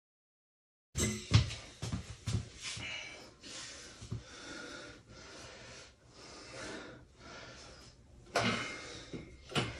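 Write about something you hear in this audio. A man breathes hard and grunts with effort.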